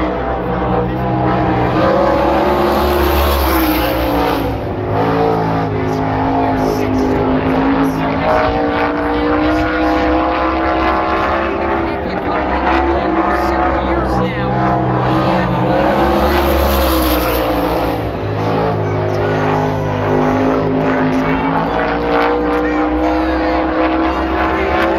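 A race car engine roars loudly, rising and falling in pitch as it speeds around the track.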